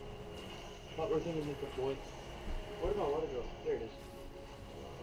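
Young people talk and react with animation, close by.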